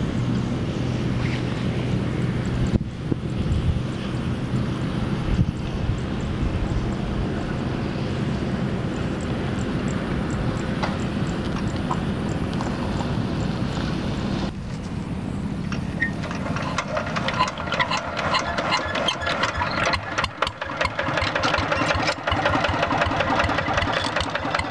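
A single-cylinder diesel walking tractor engine idles.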